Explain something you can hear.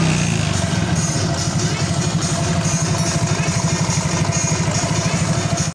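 A motorcycle engine idles close by with a steady, rapid putter.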